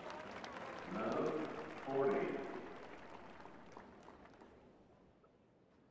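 A crowd cheers and applauds, then fades away.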